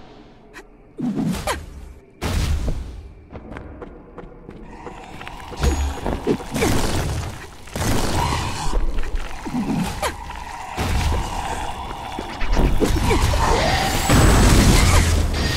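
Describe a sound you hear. A weapon whooshes through the air in quick swings.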